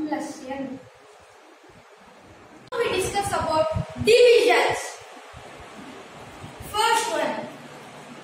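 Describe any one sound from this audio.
A boy speaks clearly and close by.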